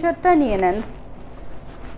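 A young woman speaks briefly and close by.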